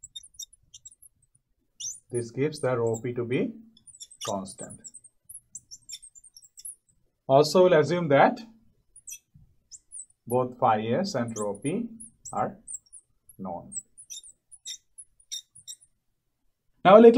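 A marker squeaks faintly on a glass board.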